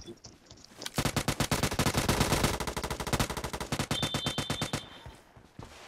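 A rifle fires in rapid automatic bursts.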